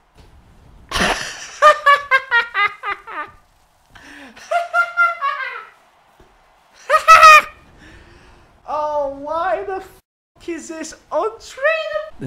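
A young man shouts and screams with excitement.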